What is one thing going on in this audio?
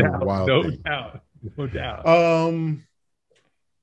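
A man talks cheerfully over an online call.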